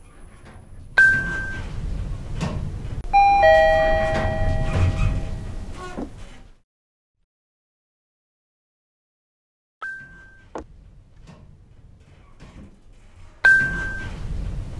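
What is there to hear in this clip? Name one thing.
An elevator chime dings.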